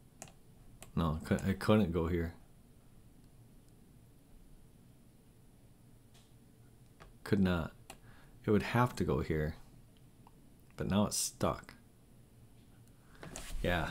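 A middle-aged man talks calmly into a close microphone, in short bursts.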